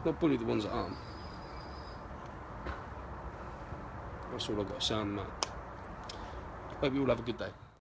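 A man speaks firmly and close to the microphone, in short bursts with pauses.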